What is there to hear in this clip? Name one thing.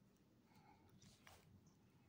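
A small dog pants softly close by.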